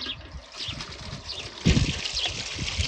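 A metal bowl clanks against another bowl.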